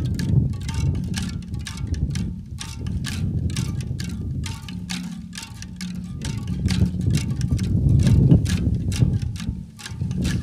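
A group of bamboo zithers is plucked and tapped in a quick, steady rhythm.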